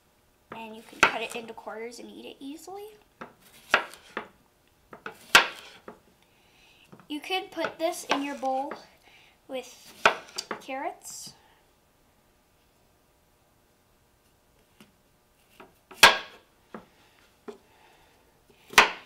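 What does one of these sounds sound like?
A knife chops vegetables against a cutting board.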